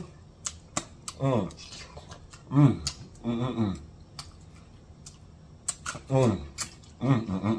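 A man eats close to a microphone, with wet smacking and chewing sounds.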